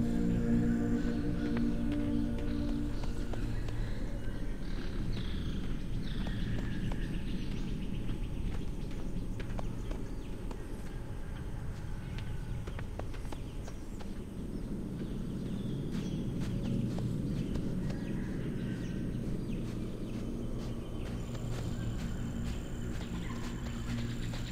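Footsteps patter quickly over grass and sand.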